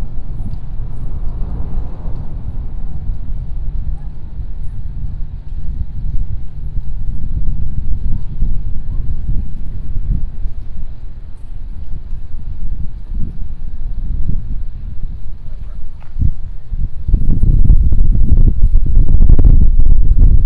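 Wind rumbles and buffets outdoors, growing stronger toward the end.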